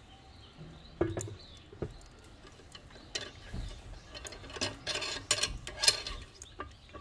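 Metal handles clink against an iron kettle.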